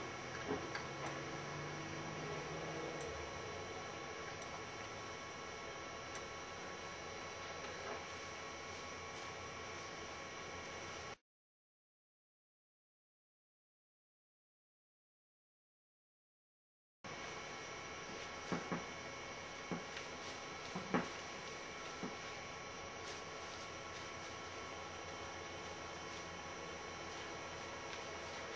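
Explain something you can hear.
Computer equipment hums steadily.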